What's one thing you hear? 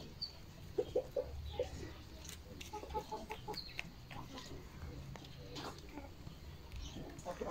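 A hen pecks at dry earth.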